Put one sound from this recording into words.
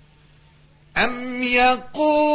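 An adult man chants in a long, sustained voice, heard through a microphone.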